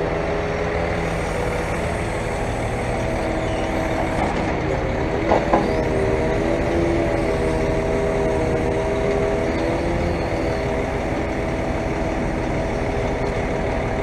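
A diesel engine rumbles steadily nearby.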